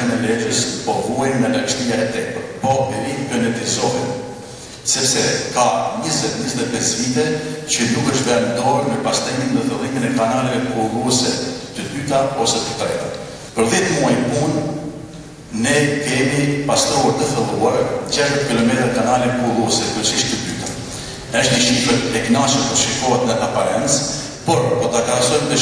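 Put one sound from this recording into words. A middle-aged man speaks steadily into a microphone.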